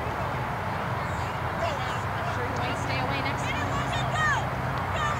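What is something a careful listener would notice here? Young children shout and call out excitedly outdoors.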